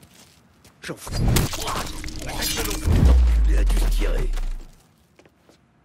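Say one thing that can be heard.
A man grunts and struggles in a scuffle.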